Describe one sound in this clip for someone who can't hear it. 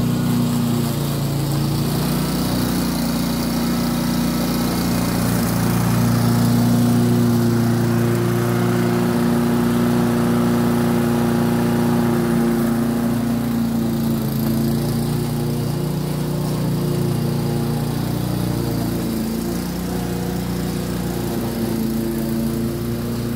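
A petrol lawnmower engine drones steadily close by.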